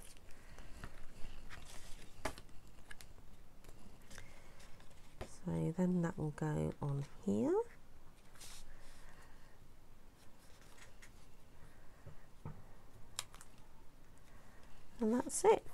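Paper and card rustle as they are handled and pressed down.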